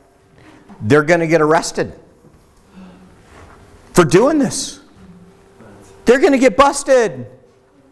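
A middle-aged man speaks with animation in a room with some echo.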